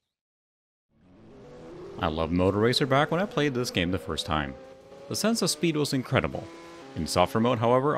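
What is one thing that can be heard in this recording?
A motorcycle engine roars and revs at high speed.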